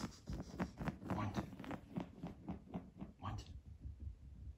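A cat's paws patter softly on a tiled floor.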